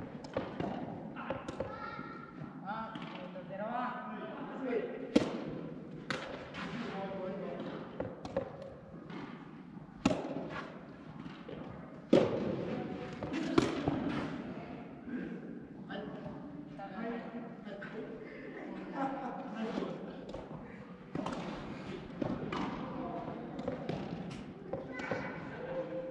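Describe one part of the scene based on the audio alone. Tennis rackets hit a ball with sharp pops that echo around a large hall.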